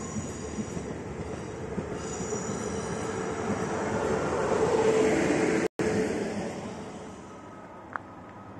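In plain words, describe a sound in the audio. A train passes close by, rumbling and rushing louder before fading away.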